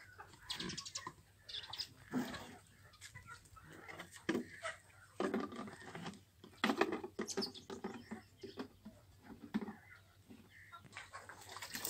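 Plastic caps click and knock against plastic water jugs.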